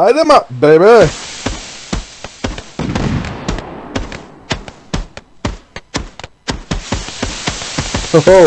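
Fireworks crackle and pop in rapid bursts.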